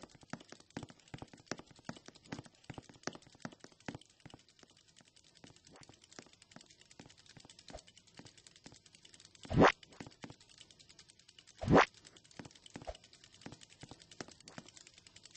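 Footsteps tap quickly on a hard surface.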